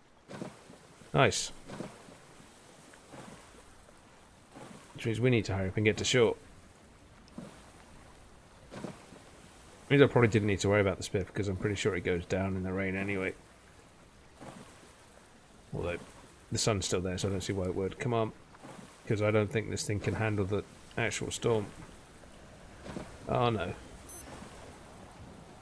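Waves slosh and lap against a small inflatable raft.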